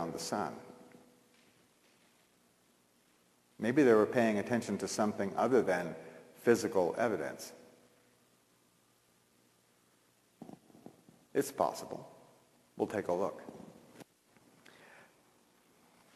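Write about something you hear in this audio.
A middle-aged man speaks calmly to an audience.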